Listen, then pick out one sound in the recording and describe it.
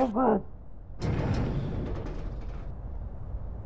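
A heavy metal door scrapes open.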